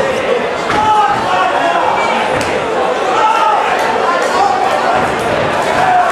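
Gloved punches thud against a body.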